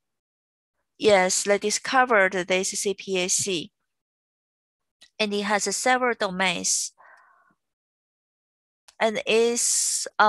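A young woman speaks calmly through a microphone on an online call.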